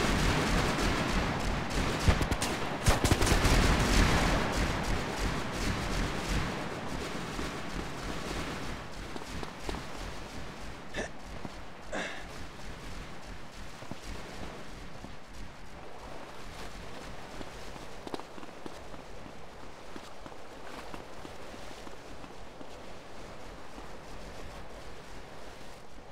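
Footsteps run quickly across stone.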